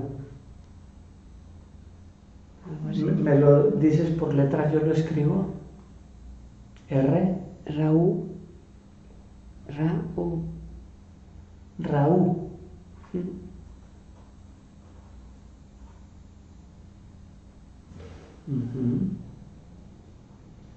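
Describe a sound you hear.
An elderly man speaks calmly close by, in short phrases with pauses.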